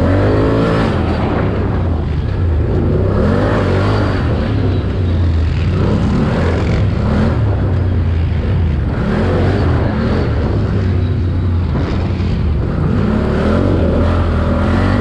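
Wind buffets loudly against the rider's helmet.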